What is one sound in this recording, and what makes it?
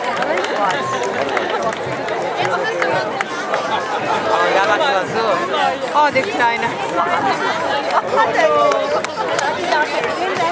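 A crowd of men and women chatters outdoors with many overlapping voices.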